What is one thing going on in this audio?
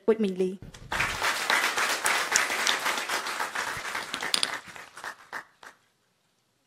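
An audience applauds, and the clapping fades out.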